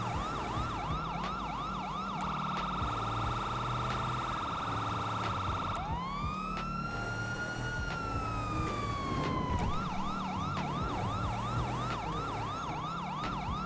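A police siren wails and yelps, switching between fast and slow patterns.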